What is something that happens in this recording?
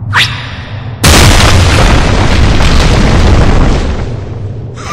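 A loud rushing whoosh bursts out and fades away.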